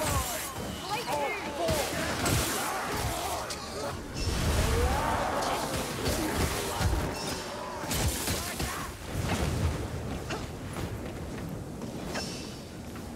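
A blade swishes and strikes with sharp impacts.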